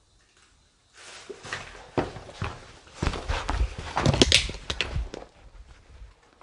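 Footsteps run hurriedly across a hard floor.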